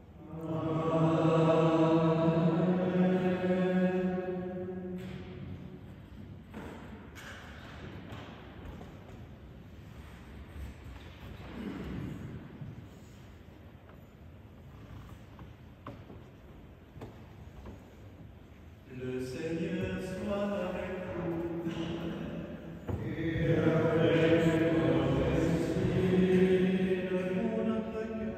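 An elderly man chants slowly through a microphone in an echoing hall.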